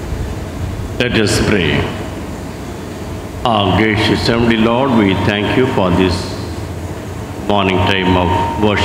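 A middle-aged man reads aloud calmly through a microphone in an echoing hall.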